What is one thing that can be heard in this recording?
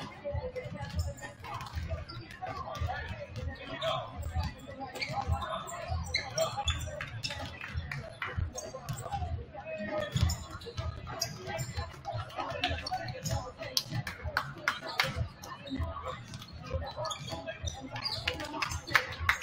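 Basketballs bounce on a wooden court, echoing in a large hall.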